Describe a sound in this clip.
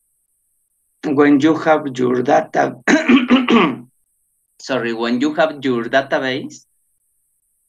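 A man speaks calmly into a microphone, heard as on an online call.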